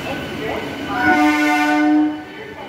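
A train horn sounds loudly and briefly.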